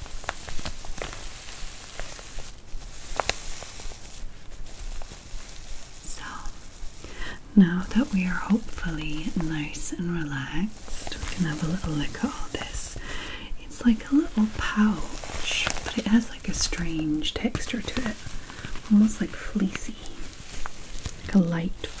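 Fingernails scratch and rub against a soft fabric pouch.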